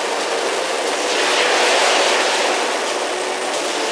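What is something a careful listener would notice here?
Flares burst with a rushing hiss.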